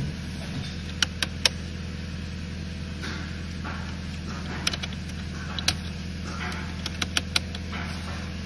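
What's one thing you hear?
Dashboard knobs click as they are turned.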